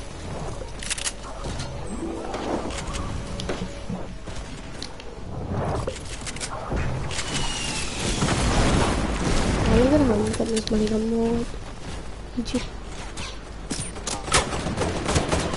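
Gunfire cracks in a video game.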